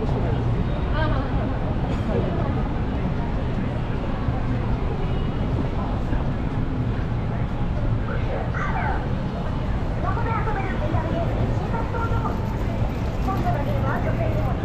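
A crowd murmurs with many voices nearby.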